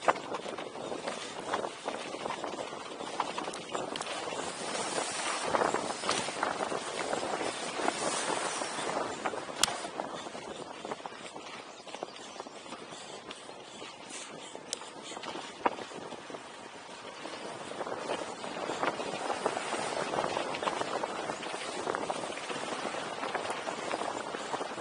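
Wind rushes loudly past the rider outdoors.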